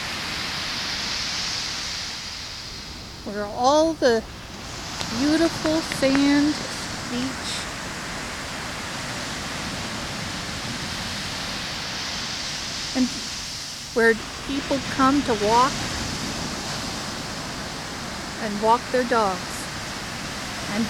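Waves wash steadily onto a beach outdoors.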